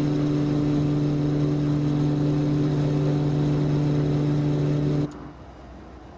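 Aircraft engines drone loudly and steadily.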